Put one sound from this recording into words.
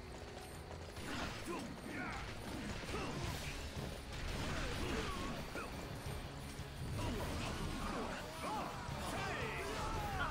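Swords clash and swish in a fight.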